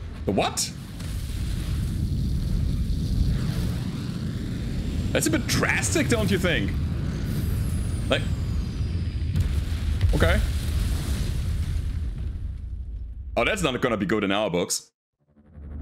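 Jet engines roar loudly.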